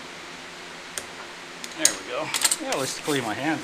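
Metal engine parts click and clink under a hand.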